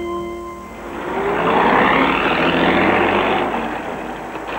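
An old car engine rumbles as the car drives past close by.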